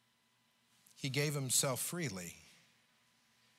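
An older man speaks briefly through a microphone in a large echoing room.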